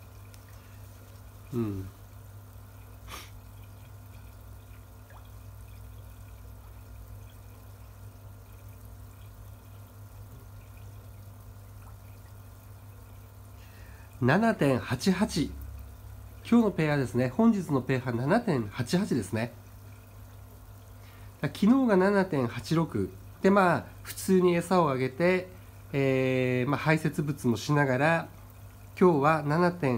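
Water bubbles and splashes steadily in a tank.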